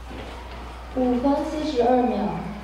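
A group of children sings together in a large hall.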